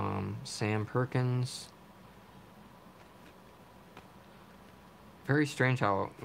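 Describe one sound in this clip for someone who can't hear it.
Trading cards slide and rustle softly between hands.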